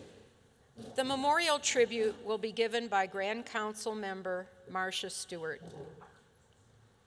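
An elderly woman speaks into a microphone, clear and close.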